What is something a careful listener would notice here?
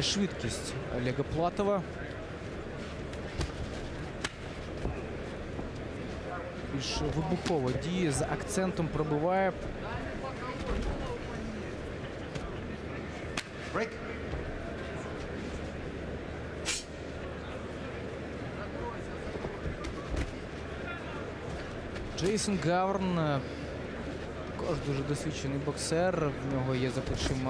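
A large crowd murmurs and cheers in a big hall.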